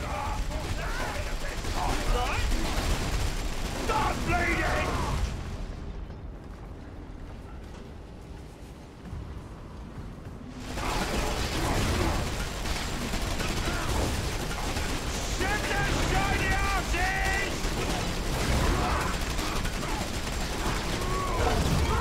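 Gunfire and clashing weapons rumble through a busy battle.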